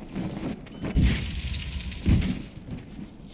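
A heavy crate thuds onto the ground.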